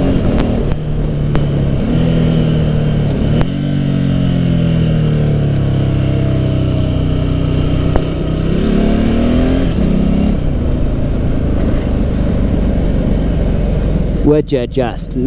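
A motorcycle engine hums and its pitch rises and falls as it changes speed.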